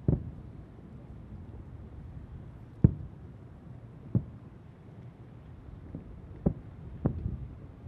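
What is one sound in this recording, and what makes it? Distant fireworks boom and thud one after another.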